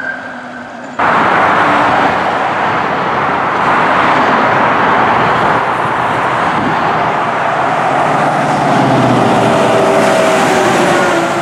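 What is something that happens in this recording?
Tyres rush over a highway.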